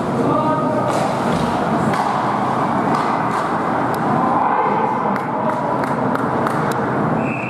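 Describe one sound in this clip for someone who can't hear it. Ice skates scrape and carve across the ice in an echoing rink.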